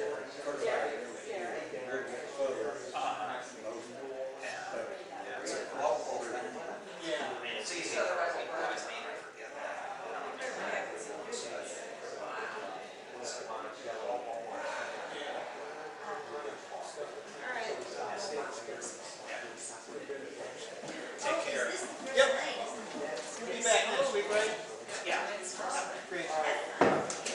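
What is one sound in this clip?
Men talk casually in a large echoing hall.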